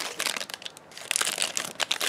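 Scissors snip through a plastic wrapper.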